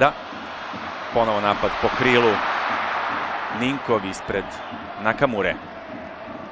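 A stadium crowd roars loudly as a shot is taken near goal.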